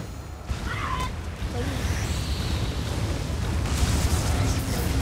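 Magic spells whoosh and hit in a fight.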